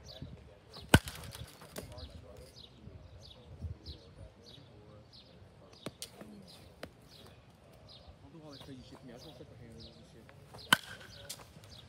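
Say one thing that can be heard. A bat cracks sharply against a ball.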